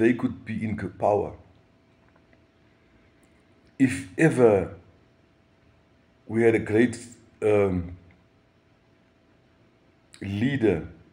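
A middle-aged man speaks close to the microphone in short bursts with pauses.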